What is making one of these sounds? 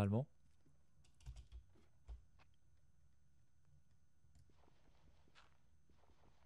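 Blocks of dirt crunch softly as they are dug away, one after another.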